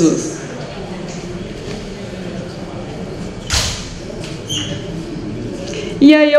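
A young woman speaks through a microphone.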